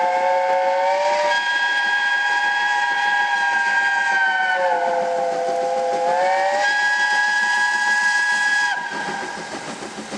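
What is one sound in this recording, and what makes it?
A steam locomotive chuffs in the distance.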